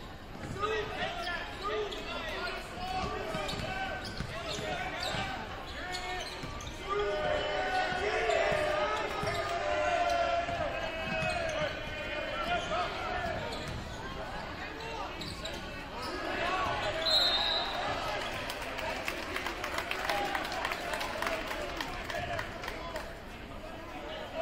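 A crowd murmurs and cheers in a large echoing gym.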